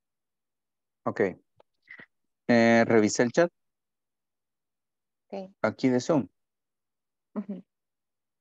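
A young man speaks in short bursts over an online call.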